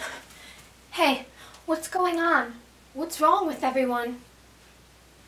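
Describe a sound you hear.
A young woman shouts angrily at close range.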